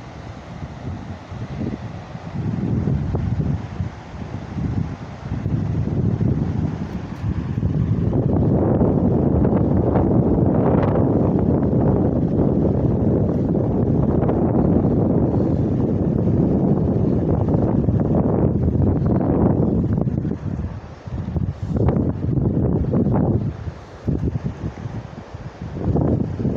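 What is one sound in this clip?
Wind gusts roar across the microphone outdoors.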